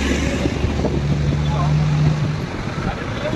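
A motor scooter buzzes past close by.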